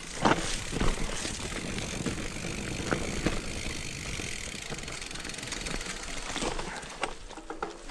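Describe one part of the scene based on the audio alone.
A bicycle rattles and clunks over bumps.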